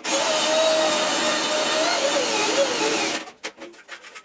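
An electric drill whirs loudly, its pitch wavering as it bores into metal.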